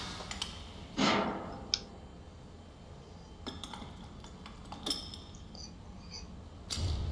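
A metal lever clanks as a hand pulls it.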